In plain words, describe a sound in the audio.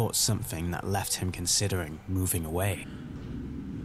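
A man speaks with animation into a nearby microphone.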